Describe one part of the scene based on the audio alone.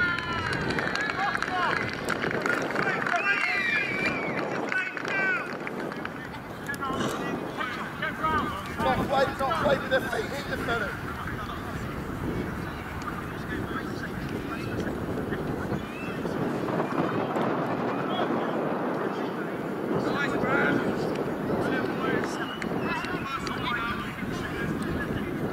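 Young men shout and call out across an open field, far off.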